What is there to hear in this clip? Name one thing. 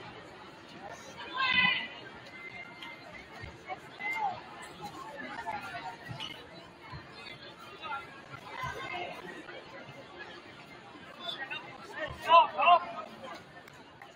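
Young women cheerleaders shout and cheer together.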